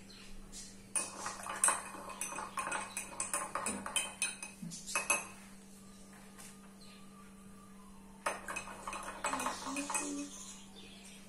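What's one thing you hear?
A spoon clinks and scrapes against a glass while stirring.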